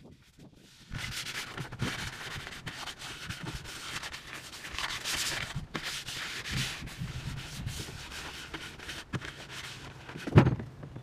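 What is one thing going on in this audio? A man scrubs a plastic kayak hull with a brush.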